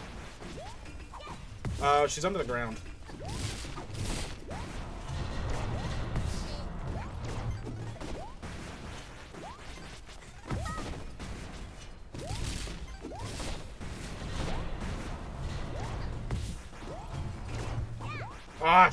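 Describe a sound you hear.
Video game music plays.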